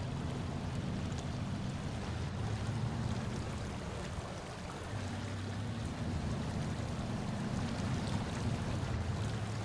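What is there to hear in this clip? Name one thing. A heavy truck engine rumbles and labours steadily.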